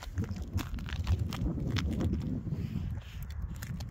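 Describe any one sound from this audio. Footsteps crunch on rough, loose rock.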